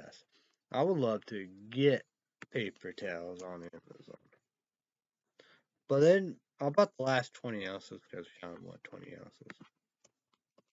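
A young man talks calmly and close to the microphone.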